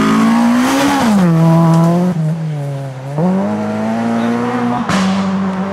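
A rally car engine roars loudly at high revs, its pitch rising and falling with gear changes.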